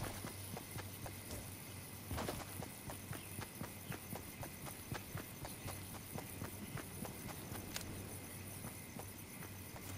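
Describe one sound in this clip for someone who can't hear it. Footsteps thud quickly across hard ground.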